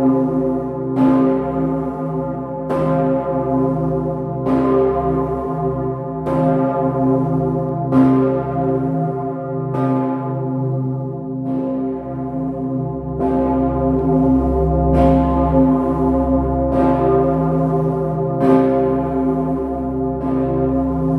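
A huge church bell tolls loudly and close by, each stroke ringing on in a long, humming resonance.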